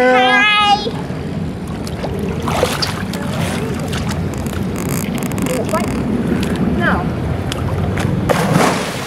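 Water splashes as a girl swims.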